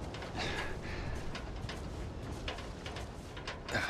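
A wooden ladder knocks against a brick wall.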